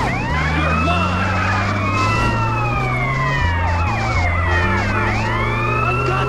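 A police siren wails close behind.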